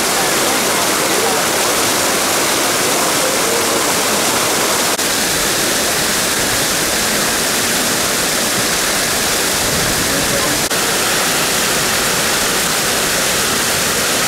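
Fountain jets splash steadily into a pool.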